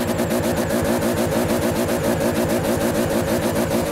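Tyres screech on tarmac.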